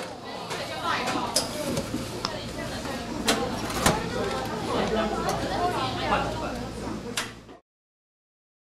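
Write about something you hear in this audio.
Young women chatter nearby.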